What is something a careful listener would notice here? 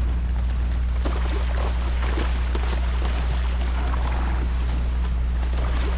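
Water splashes as a mount runs through it.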